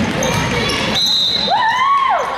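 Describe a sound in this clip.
A referee's whistle blows briefly.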